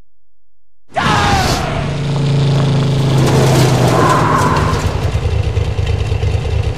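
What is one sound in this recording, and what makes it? A motorcycle engine revs loudly.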